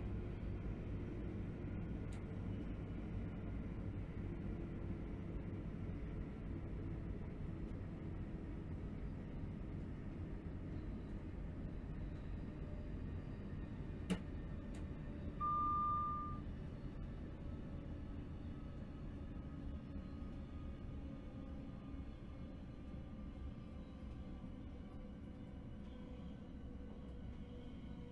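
An electric train rumbles steadily along the track.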